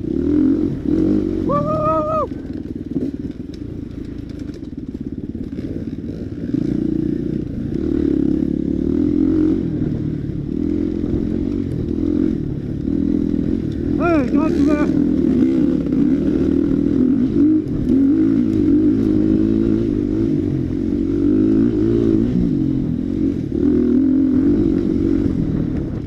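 A dirt bike engine revs and drones close by.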